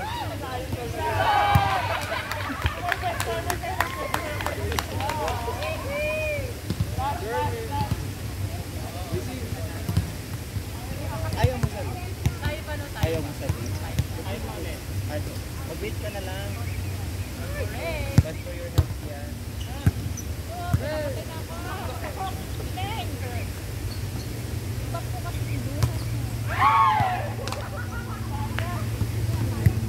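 Young people call out and shout to each other outdoors.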